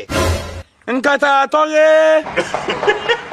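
A man shouts loudly up close.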